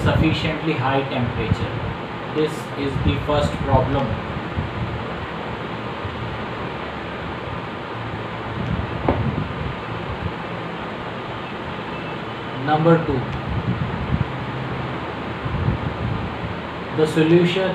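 A middle-aged man talks calmly into a nearby microphone.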